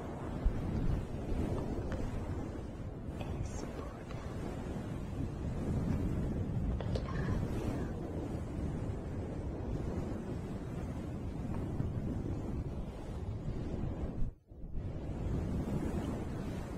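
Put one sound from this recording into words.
A woman whispers close to a microphone.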